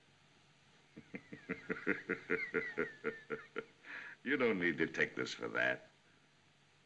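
A heavy-set man laughs heartily.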